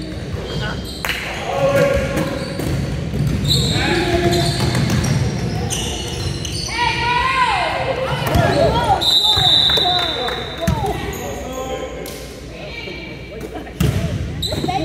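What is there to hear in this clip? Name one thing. A basketball bounces on a wooden floor with echoing thuds.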